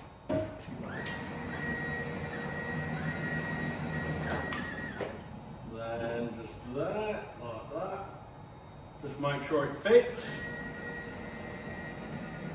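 A cutting machine hums steadily.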